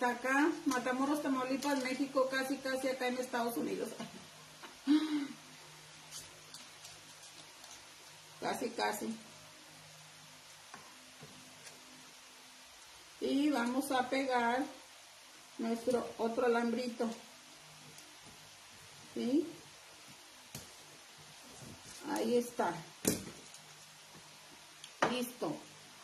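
A middle-aged woman speaks calmly and close by, in short bursts with pauses.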